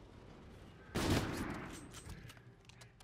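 A sniper rifle fires a single loud, booming shot.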